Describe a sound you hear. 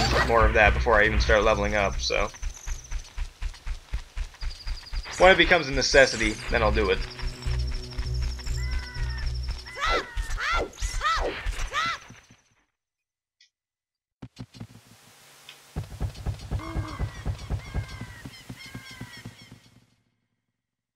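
Small footsteps patter quickly on the ground.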